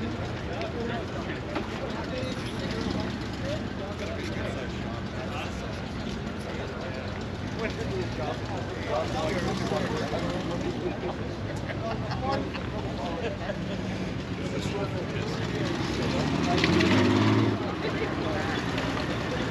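People chatter nearby outdoors.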